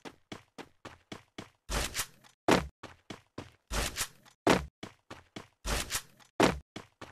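Quick footsteps run over grass and dirt.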